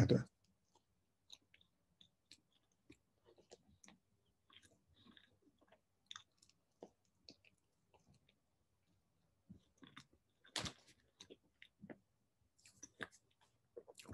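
A man chews food with soft crunching sounds.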